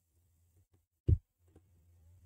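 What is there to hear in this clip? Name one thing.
A grenade is picked up with a short metallic click.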